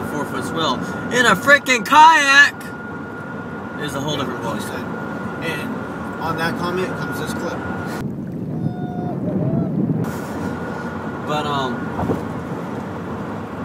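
A car engine hums steadily inside a cab.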